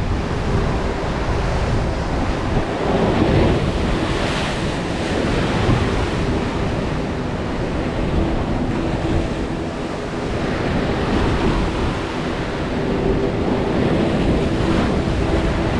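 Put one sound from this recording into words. Waves crash and churn against rocks below.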